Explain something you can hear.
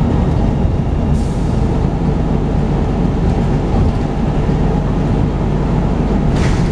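A vehicle engine rumbles steadily from inside as it drives along a road.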